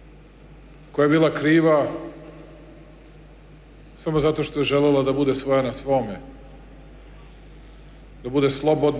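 A middle-aged man speaks slowly and firmly into a microphone, with pauses.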